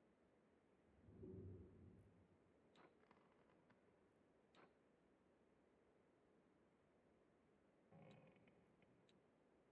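A young man speaks briefly and quietly into a microphone.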